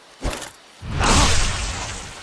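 A magic blast bursts with a loud roaring whoosh.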